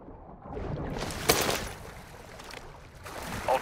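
A body breaks the water's surface with a splash.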